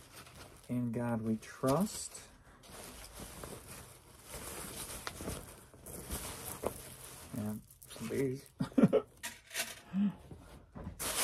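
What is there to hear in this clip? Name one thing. A man speaks casually and close by.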